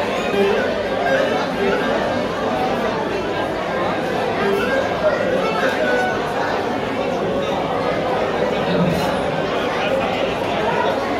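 A crowd of men and women chatter all around in a large, echoing hall.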